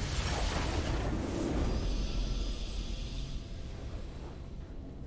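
A triumphant game victory fanfare plays and slowly fades.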